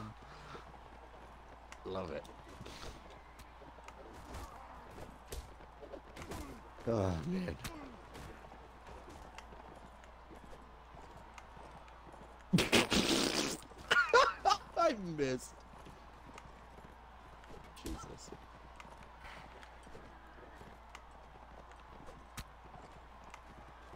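Horses' hooves thud on dry ground.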